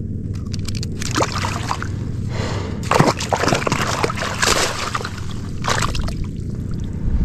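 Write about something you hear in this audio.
Water splashes and drips from a landing net.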